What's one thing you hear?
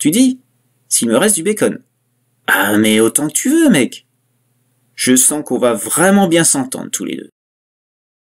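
A man speaks slowly, close up.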